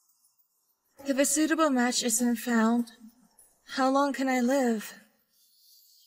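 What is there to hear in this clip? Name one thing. A second young woman speaks calmly and quietly, close by.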